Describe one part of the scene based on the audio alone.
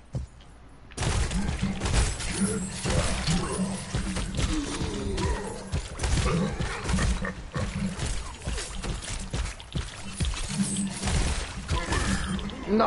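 Heavy gunfire blasts rapidly and repeatedly.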